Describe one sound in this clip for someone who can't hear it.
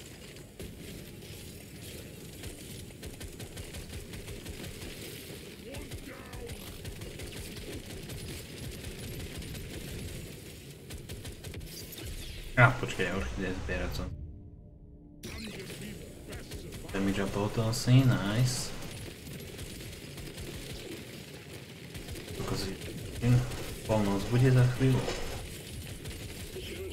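Game gunfire and explosions crackle steadily.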